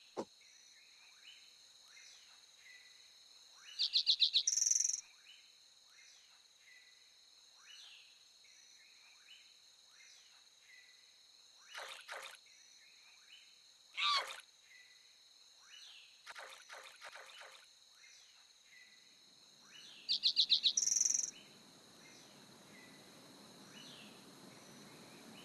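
Water splashes softly and steadily as an animal swims.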